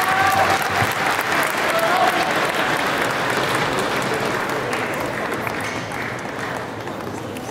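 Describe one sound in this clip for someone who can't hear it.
A large crowd applauds and cheers in a big hall, then quiets down.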